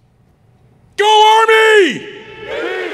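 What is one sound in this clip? A man shouts loudly through a loudspeaker.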